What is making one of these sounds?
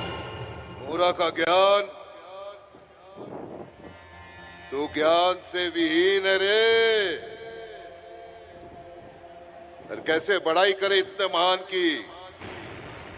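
A man declaims dramatically and loudly through a microphone, heard over loudspeakers.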